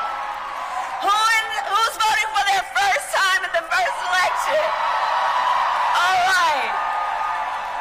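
A woman speaks with animation into a microphone over loudspeakers.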